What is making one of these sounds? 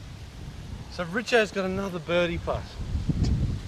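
A man speaks calmly outdoors, a short distance away.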